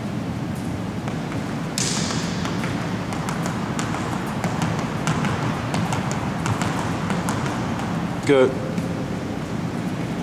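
Sneakers tap and squeak quickly on a wooden gym floor, echoing in a large hall.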